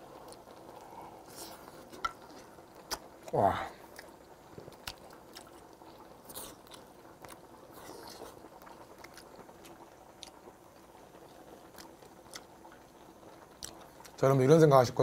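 A man slurps and chews food close to a microphone.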